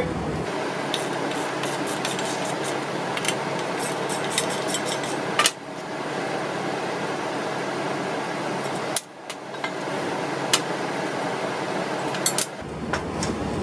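A belt sander grinds steadily against metal.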